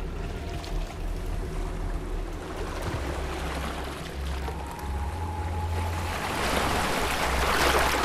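Water laps against a gliding wooden boat.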